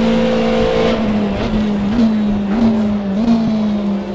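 A race car engine drops in pitch and blips as it shifts down.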